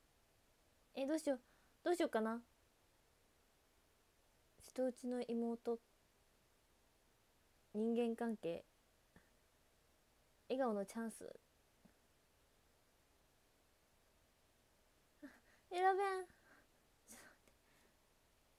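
A young woman speaks calmly in short bursts, close to a microphone.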